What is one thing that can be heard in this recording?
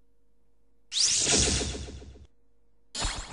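A magical whooshing chime sparkles loudly and fades.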